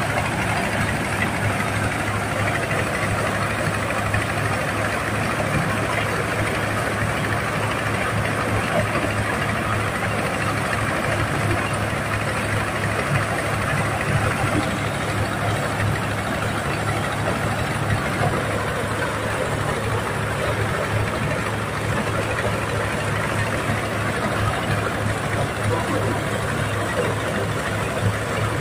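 A threshing machine whirs and rattles as grain pours through it.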